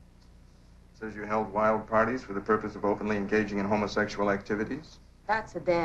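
A middle-aged woman speaks with concern.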